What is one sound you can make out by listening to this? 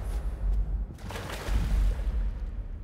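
Water splashes loudly as a small body plunges in.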